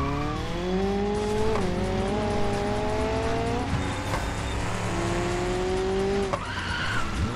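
A car engine revs high and shifts gears.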